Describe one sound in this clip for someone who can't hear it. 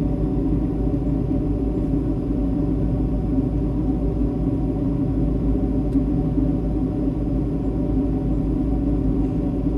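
Jet engines roar in a steady, muffled low drone.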